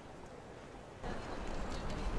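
Running footsteps patter on a track.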